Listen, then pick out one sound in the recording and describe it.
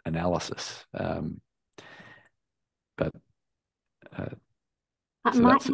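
A man speaks calmly over an online call, presenting.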